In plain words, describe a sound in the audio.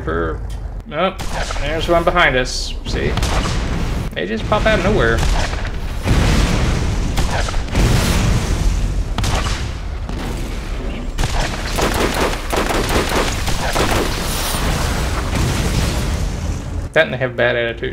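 A mounted gun fires in rapid bursts.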